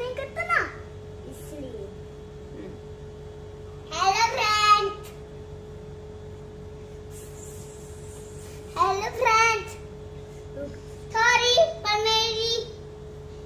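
A young girl speaks in a high, lively voice close by, in short bursts.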